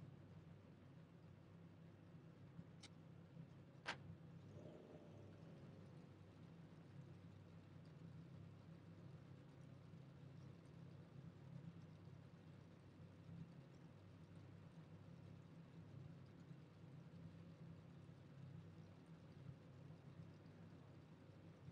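A race car engine idles with a low, steady rumble.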